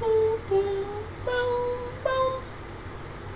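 Harp notes play a gentle melody.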